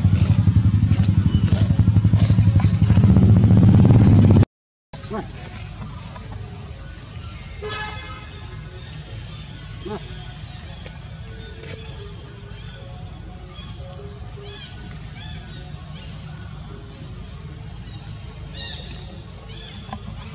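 Dry leaves rustle as a monkey walks over them.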